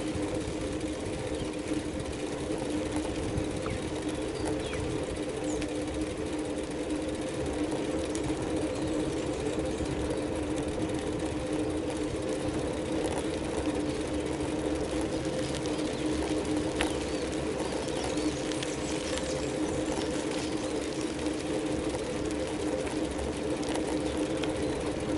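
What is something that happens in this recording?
Tyres roll steadily over a paved road.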